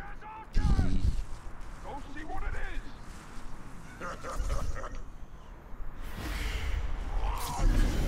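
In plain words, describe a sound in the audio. Footsteps rustle through leafy bushes.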